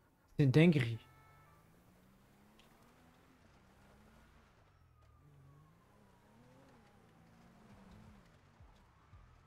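A car engine hums and revs as the car drives off.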